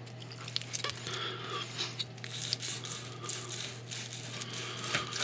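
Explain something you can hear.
Food squelches softly as a knife cuts into it.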